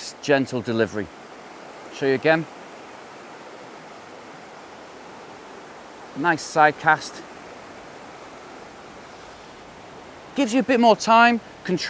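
Shallow river water flows and ripples steadily.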